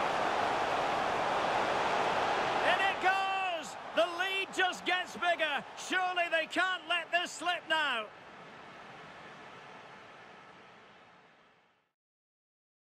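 A large stadium crowd roars and cheers, then fades away.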